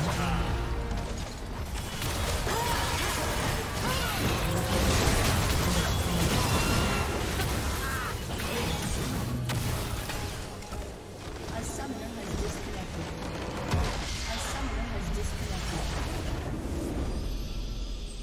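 Game spell effects and blasts crackle and boom in a loud fight.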